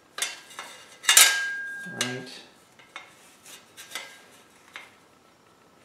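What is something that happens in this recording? Metal pieces clink and scrape against each other.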